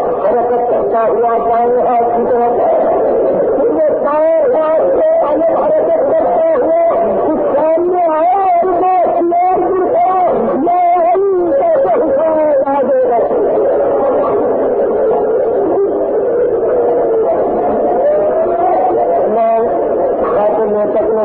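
A man delivers a speech with passion through a microphone, heard on an old, muffled recording.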